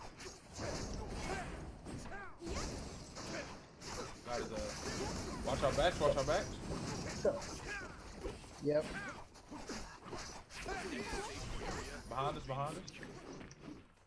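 Magic blasts whoosh and burst.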